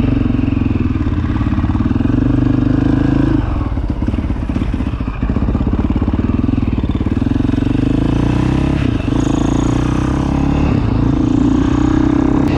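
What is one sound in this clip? A motorcycle engine buzzes loudly close by, revving up and down.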